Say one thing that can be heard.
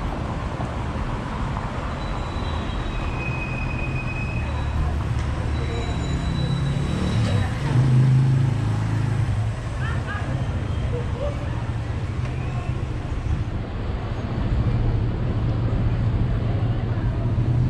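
Car traffic rumbles along a street nearby.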